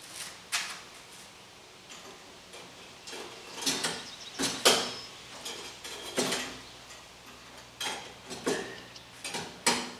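A metal bar clanks against a wooden pallet.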